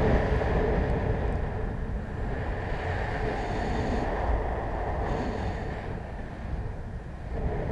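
Wind rushes steadily past the microphone.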